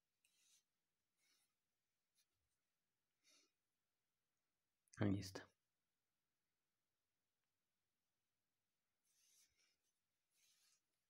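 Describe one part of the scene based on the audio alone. Yarn rustles softly as it is pulled through knitted fabric.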